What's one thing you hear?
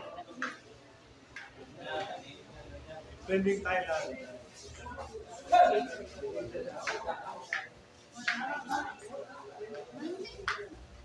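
Young men talk and call out nearby.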